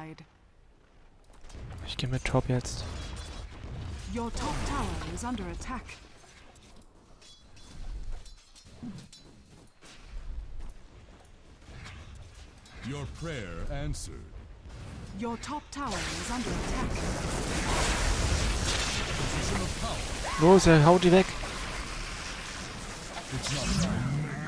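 Electric spell effects crackle and zap.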